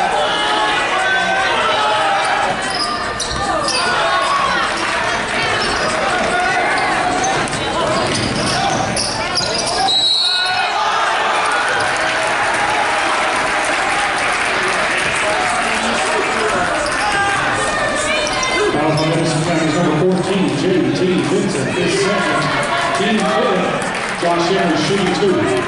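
A crowd cheers and talks in a large echoing gym.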